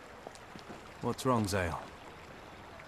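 A man asks a question.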